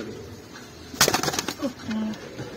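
A pigeon flaps its wings in a short burst.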